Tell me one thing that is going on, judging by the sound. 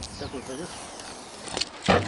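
Adhesive tape rips as it is peeled off a panel.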